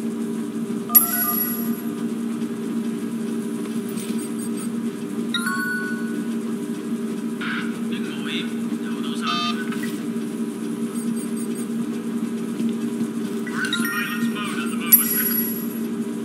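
A mobile phone gives a short message chime.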